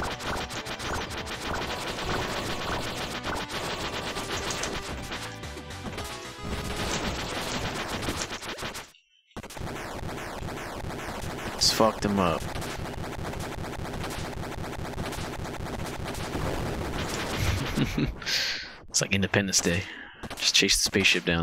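Explosions and gunfire from a video game boom and crackle.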